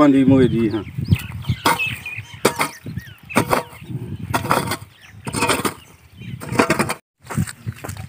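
A hoe thuds repeatedly into dry ground.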